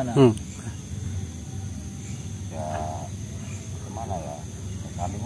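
A young man shouts in short, high calls close by.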